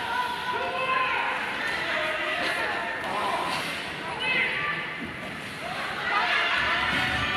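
Young players shout and call out in an echoing rink.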